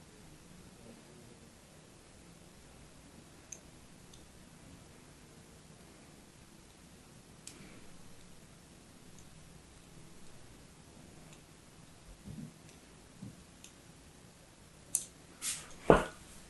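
A blade scores soft soap with faint scratching and crisp little clicks.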